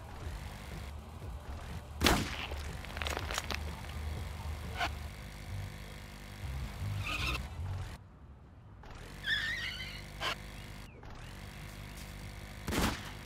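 A small scooter engine hums steadily.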